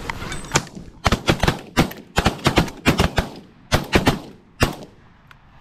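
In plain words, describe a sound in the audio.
Shotguns fire several loud, quick blasts close by.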